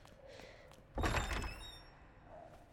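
A heavy wooden door bangs open.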